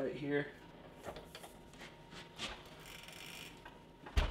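A metal hand press clicks and clunks.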